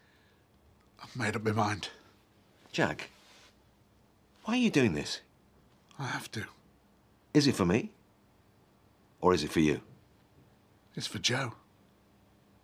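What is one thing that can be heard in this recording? A middle-aged man answers in a low, tense voice.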